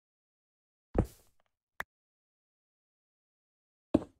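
Blocks are placed with soft knocks.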